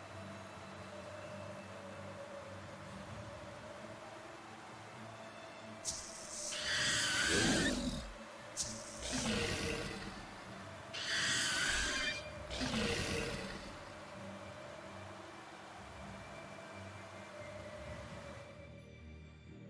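A snowboard hisses as it slides over snow.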